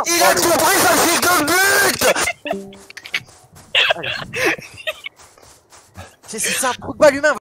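Footsteps crunch softly on sand.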